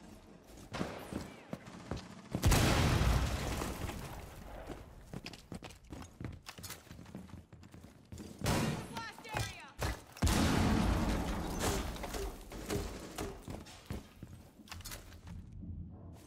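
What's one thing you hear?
Footsteps thump on a wooden floor.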